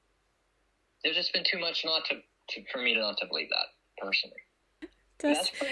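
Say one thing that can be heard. A man talks over an online call.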